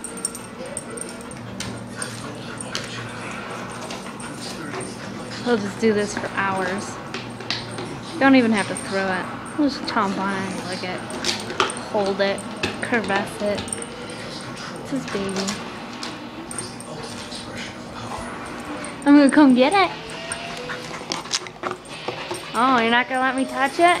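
A plastic disc scrapes and clatters on carpet as a dog plays with it.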